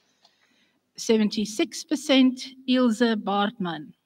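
A woman speaks into a microphone over loudspeakers, echoing in a large hall.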